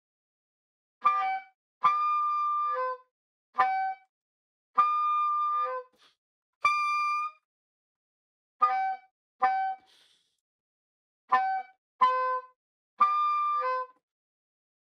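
A saxophone plays short, separate notes.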